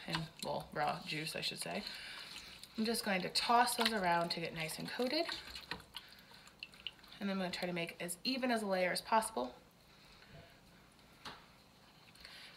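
A hand rustles food inside a metal pot.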